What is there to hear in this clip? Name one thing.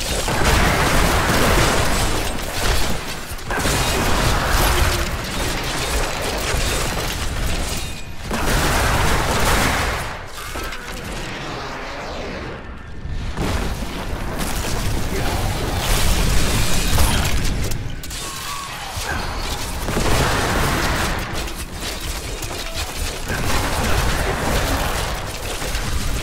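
Spells crackle and blast in a fast fantasy game battle.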